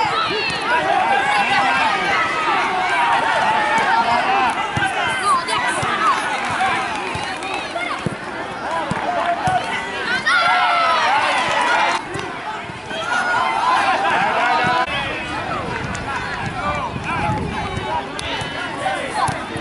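Children shout and call out across an outdoor pitch.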